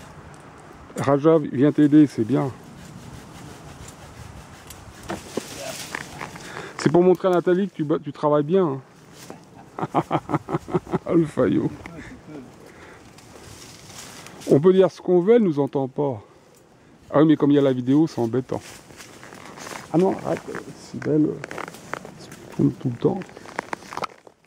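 A man speaks nearby in short, calm phrases.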